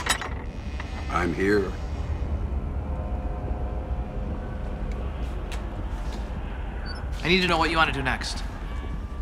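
A young man speaks in a low, tense voice.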